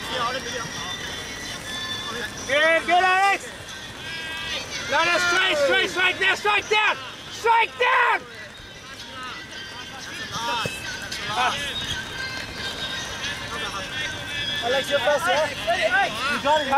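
Young men shout loudly to each other across an open field outdoors.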